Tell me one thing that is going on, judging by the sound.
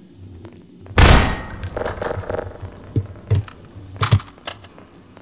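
Gunshots crack from a video game.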